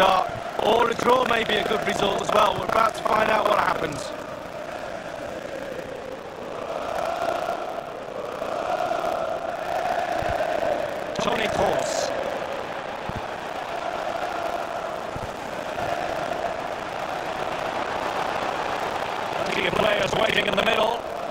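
A large stadium crowd murmurs and chants steadily.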